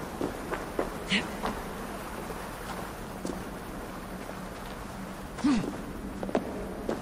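Footsteps and scrapes sound on rock.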